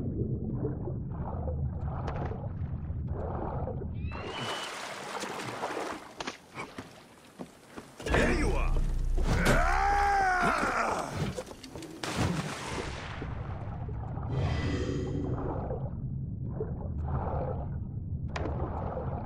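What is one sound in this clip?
Wind rushes loudly past during a fast glide.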